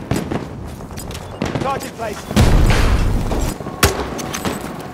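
Rapid gunshots bang and echo.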